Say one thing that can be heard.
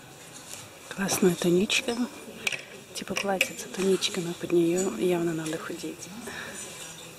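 A middle-aged woman talks close by.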